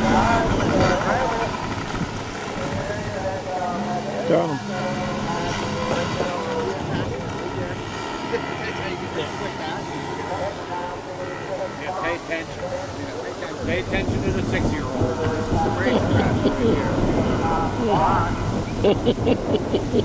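Small motorbike engines buzz and rev nearby, rising and falling in pitch outdoors.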